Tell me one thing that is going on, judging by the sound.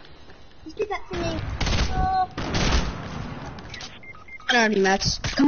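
A pistol fires several quick muffled shots.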